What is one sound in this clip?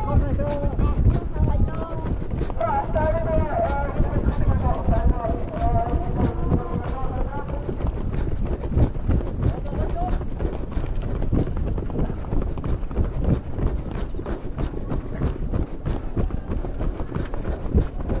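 Wind buffets the microphone with a low rumble.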